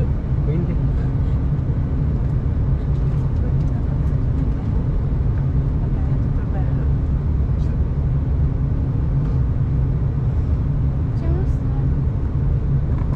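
An aircraft engine drones steadily in the cabin.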